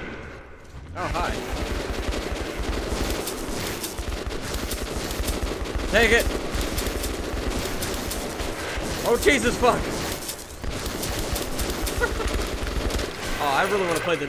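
A machine gun fires rapid bursts.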